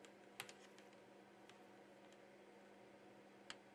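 Small plastic parts click and tap as a connector is fitted.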